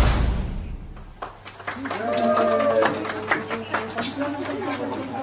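A small crowd claps and cheers.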